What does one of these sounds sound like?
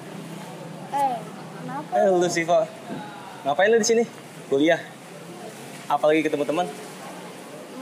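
A young woman speaks sharply, close by.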